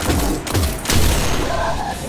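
A gun fires with a loud, sharp blast.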